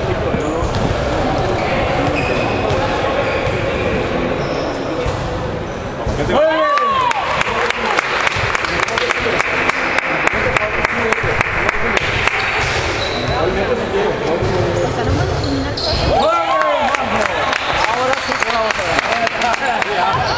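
Sneakers squeak sharply on a court in a large echoing hall.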